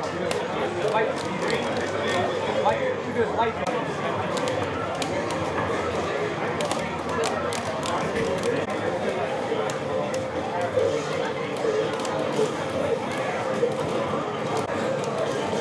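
Video game fight sounds and music play from a monitor.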